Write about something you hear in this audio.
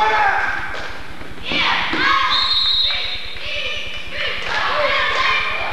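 A group of young women chants loudly in unison, echoing in a large hall.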